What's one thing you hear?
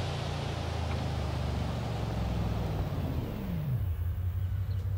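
A powerful car engine roars, then winds down as the car slows.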